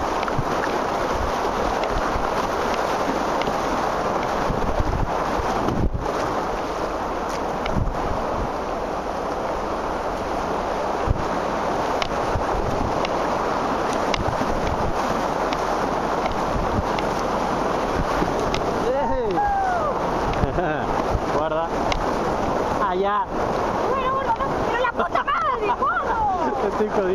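Rushing river water roars steadily close by.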